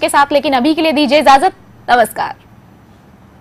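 A young woman speaks brightly and cheerfully into a microphone, close by.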